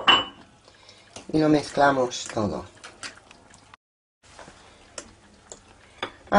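A spoon scrapes and clinks against a glass bowl.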